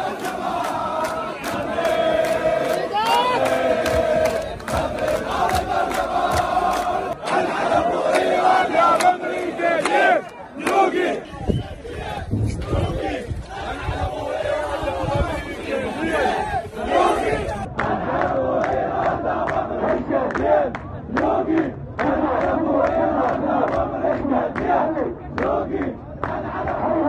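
A large crowd of men chants loudly outdoors.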